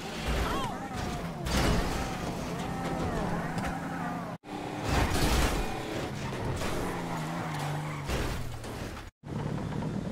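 A car engine revs loudly.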